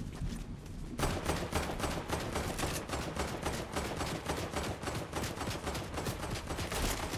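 Quick footsteps run over grass.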